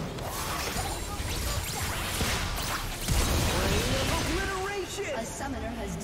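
Spell blasts and clashing hits burst in a fast fight.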